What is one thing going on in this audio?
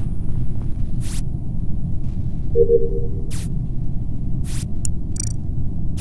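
Short electronic clicks sound.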